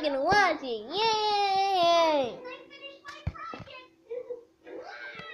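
A squeezed talking toy plays a high, cartoonish voice up close.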